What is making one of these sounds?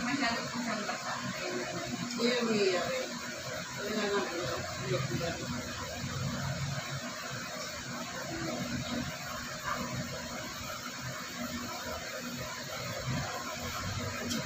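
Women talk quietly nearby.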